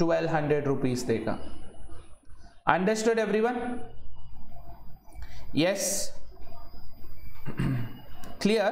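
A man speaks calmly and with emphasis, close to a microphone.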